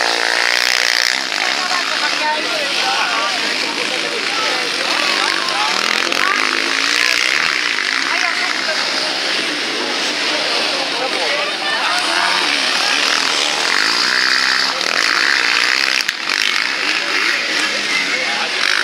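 Quad bike engines rev loudly and whine as they race past outdoors.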